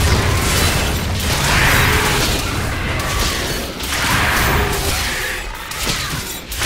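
Fire spells whoosh and roar in bursts.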